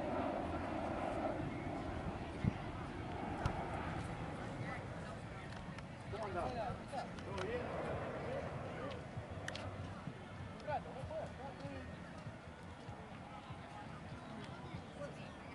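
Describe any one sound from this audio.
Young players and onlookers shout and chatter outdoors.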